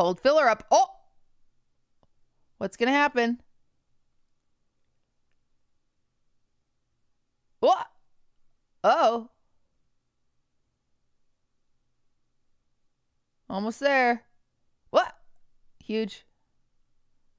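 A young woman speaks with animation close to a microphone, in short bursts.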